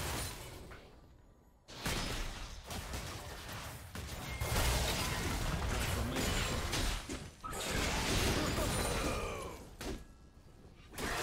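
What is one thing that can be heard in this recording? Magic blasts and weapon clashes crackle in a fast game battle.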